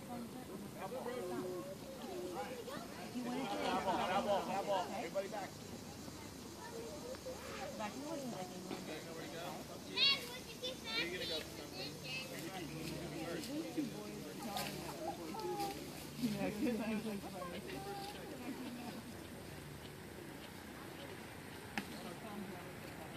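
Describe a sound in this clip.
Children and adults call out and chatter across an open field.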